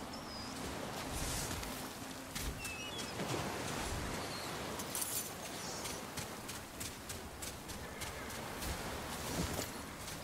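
Magic bursts crackle and whoosh.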